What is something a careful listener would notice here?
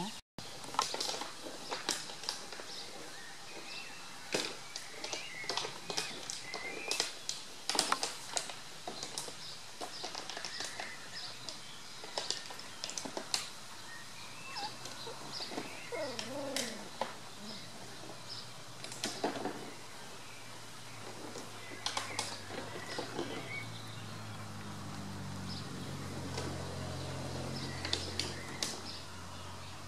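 Puppies whimper and squeak outdoors.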